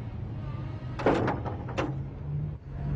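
A door bangs shut.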